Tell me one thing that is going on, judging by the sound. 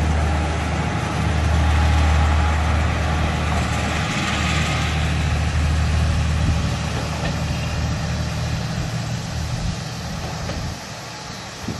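A diesel train rumbles away and slowly fades into the distance.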